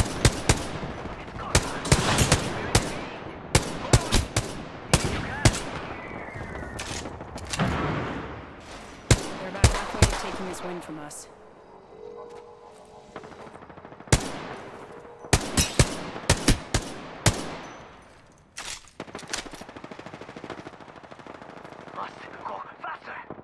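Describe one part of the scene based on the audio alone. Gunshots ring out in sharp bursts with echo.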